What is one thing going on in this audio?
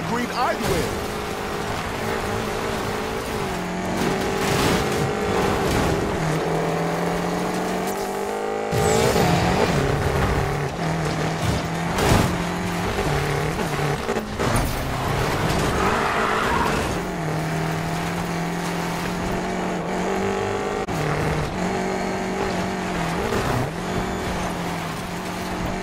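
A racing car's engine roars at high revs and shifts gears.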